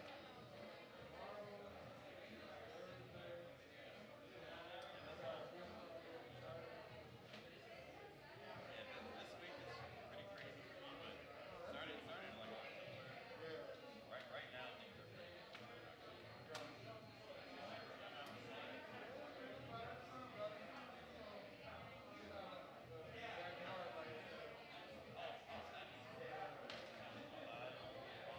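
Men chat quietly in a room.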